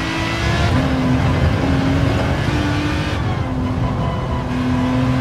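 A racing car engine roars at high revs, shifting pitch as the car changes gear.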